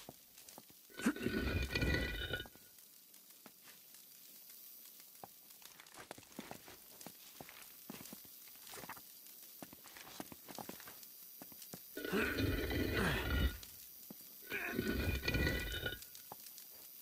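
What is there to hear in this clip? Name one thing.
A heavy stone disc grinds as it is turned.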